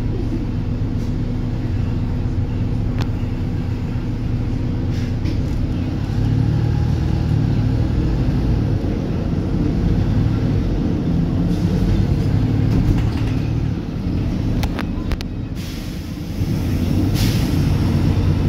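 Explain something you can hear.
A vehicle's engine rumbles steadily from inside while riding along a street.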